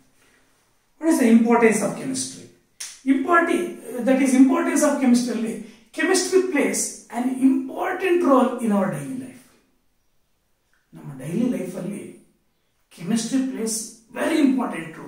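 A middle-aged man speaks up close, calmly explaining.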